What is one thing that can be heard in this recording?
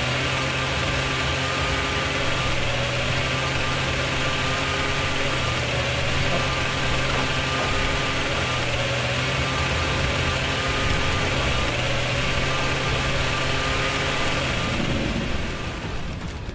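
A chainsaw idles with a steady, low rumbling drone.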